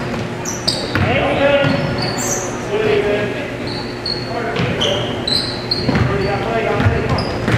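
Young players shout to each other in a large echoing hall.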